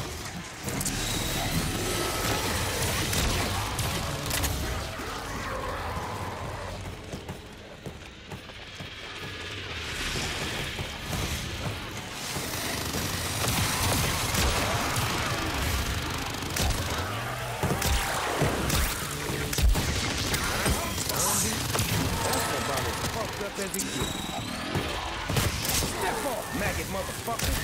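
A heavy weapon fires in rapid bursts.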